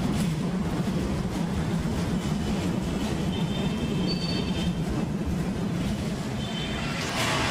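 A train rumbles along an elevated track.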